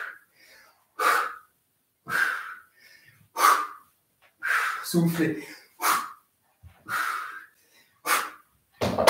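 A man breathes out hard in short, regular bursts.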